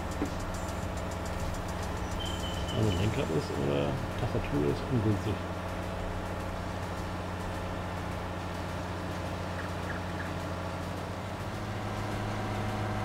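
A tractor engine drones.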